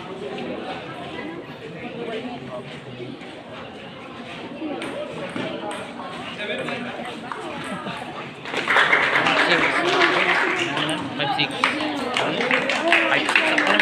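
Young people chatter and call out nearby, growing louder partway through.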